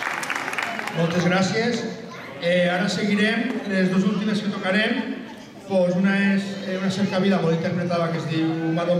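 A man speaks calmly through a microphone and loudspeaker.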